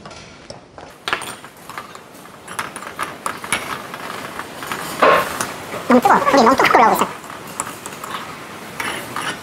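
A spoon scrapes and clinks against a clay pot.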